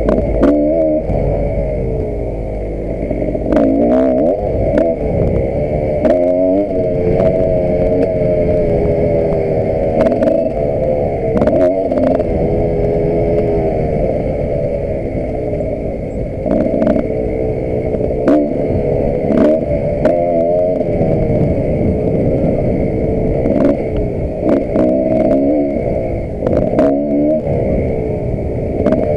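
A dirt bike engine revs and drops in pitch as the bike rides over rough ground.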